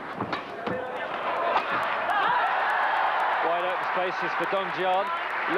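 A crowd applauds and cheers after the rally.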